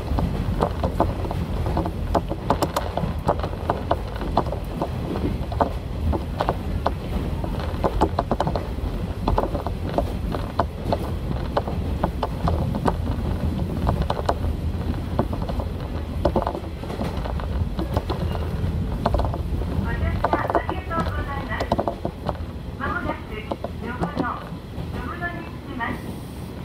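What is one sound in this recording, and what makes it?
A diesel railcar rumbles along at speed, heard from inside the carriage.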